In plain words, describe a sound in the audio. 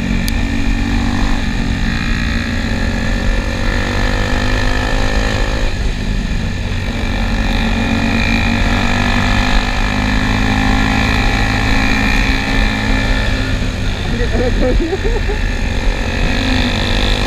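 A motorcycle engine hums steadily up close as the bike rides along.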